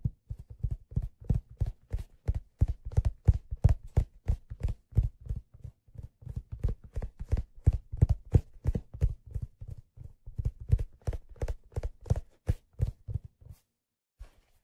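Fingers tap rapidly on a leather-covered object close to a microphone.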